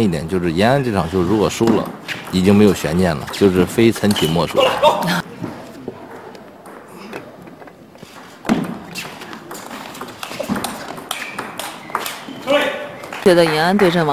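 A ping pong ball clicks back and forth off paddles and a table.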